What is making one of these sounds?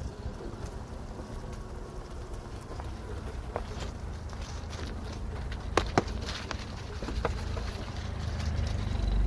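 A vehicle's engine rumbles low and steady as it drives slowly.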